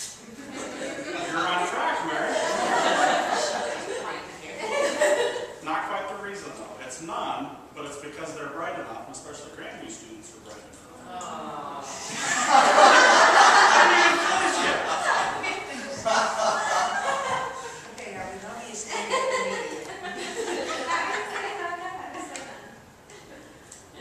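A man speaks steadily into a microphone in an echoing room.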